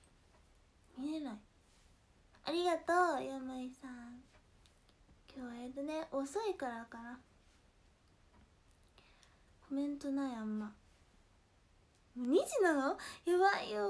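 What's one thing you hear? A young woman talks animatedly into a nearby microphone, in short bursts with pauses.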